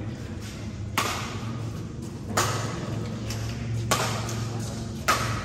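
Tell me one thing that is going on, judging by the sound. Badminton rackets strike a shuttlecock back and forth, echoing in a large indoor hall.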